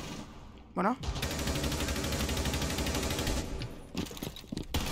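Gunshots ring out from a video game.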